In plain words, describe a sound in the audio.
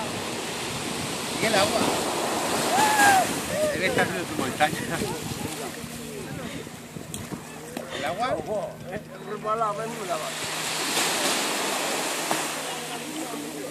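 Waves wash onto the shore nearby.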